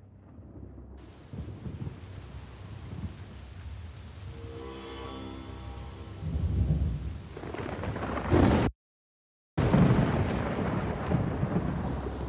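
Wind rushes through pine branches outdoors.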